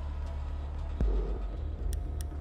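A game menu gives a heavy thud as a new choice is selected.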